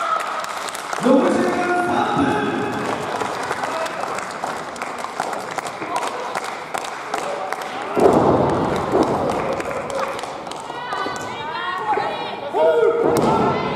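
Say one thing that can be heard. Bodies slam heavily onto a wrestling ring's canvas.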